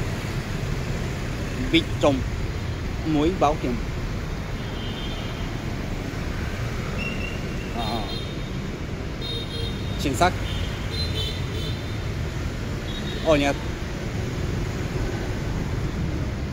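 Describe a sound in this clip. Motorbike and car traffic rumbles steadily along a street outdoors.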